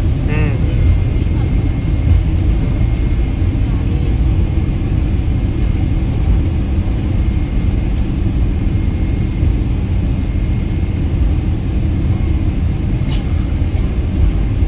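Aircraft wheels rumble over the runway.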